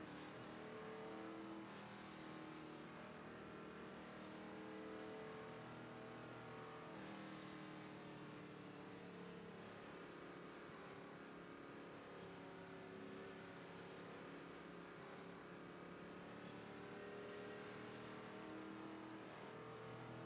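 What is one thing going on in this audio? A race car engine drones steadily, its pitch wavering slightly.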